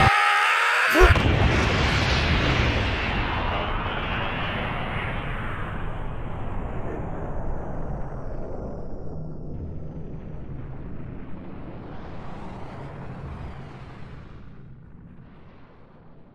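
A huge explosion booms and rumbles, slowly fading away.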